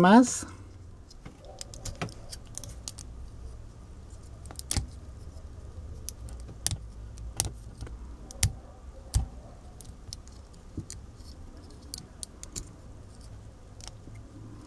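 Small plastic toy parts click and snap against each other.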